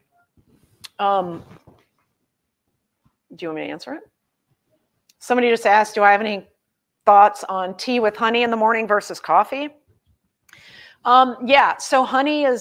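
A woman speaks calmly and clearly into a close microphone, pausing often.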